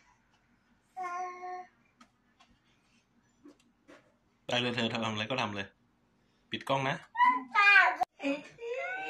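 A woman talks softly to a baby close by.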